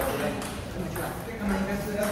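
A table tennis ball bounces on a table.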